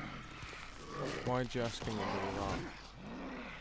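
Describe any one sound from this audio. Men grunt and scuffle in a struggle.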